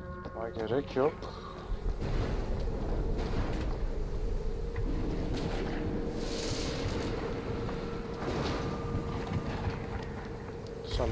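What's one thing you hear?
Footsteps tread on a stone pavement.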